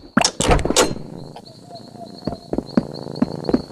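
Footsteps tap on a stone step.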